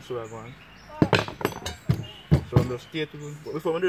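Plastic pipes knock and click together.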